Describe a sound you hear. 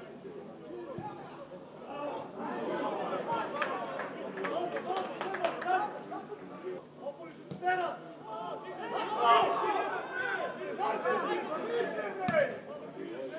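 A football is kicked with dull thuds outdoors.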